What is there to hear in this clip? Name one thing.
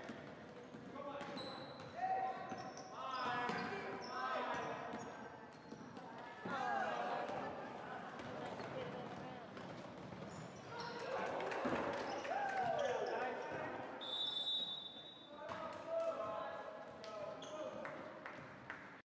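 Spectators talk and call out in an echoing gym.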